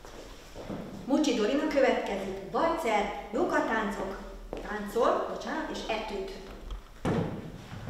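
A young woman announces calmly in an echoing hall.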